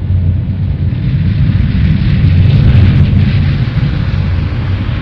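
A spaceship's engines rumble with a deep, steady drone.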